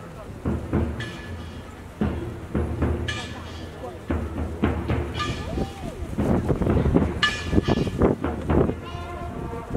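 A brass band plays together.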